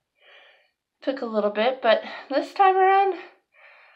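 A young woman speaks close up with animation, drawing out a whiny word.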